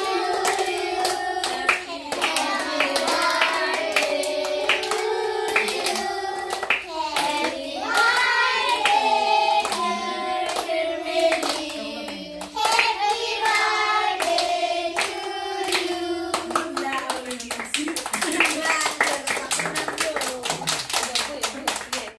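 Children clap their hands in rhythm.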